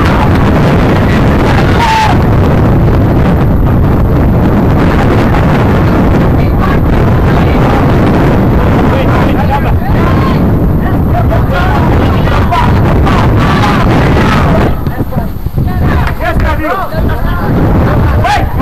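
Distant young players call out to each other across the field.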